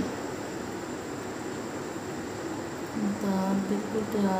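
A chili pepper is set down softly on a ceramic plate.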